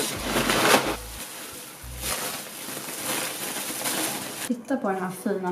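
Bubble wrap crinkles loudly.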